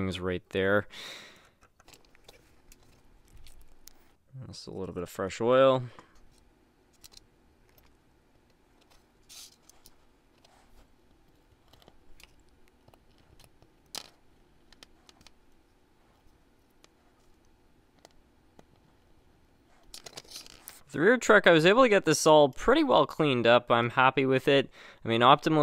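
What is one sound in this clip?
Small metal parts click and tap against each other.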